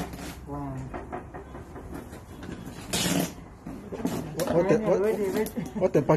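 Women talk and laugh with animation close by.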